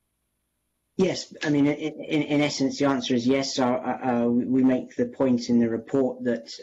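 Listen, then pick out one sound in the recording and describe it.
A man speaks calmly and steadily over an online call.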